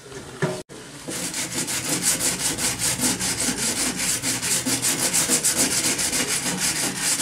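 A hand brush scrapes rapidly along a wooden beam.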